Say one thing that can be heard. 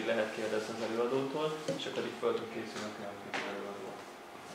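A young man speaks calmly to an audience.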